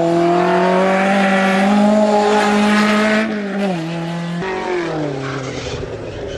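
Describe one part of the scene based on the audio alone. A rally car's engine roars at high revs, dropping in pitch as it shifts gears.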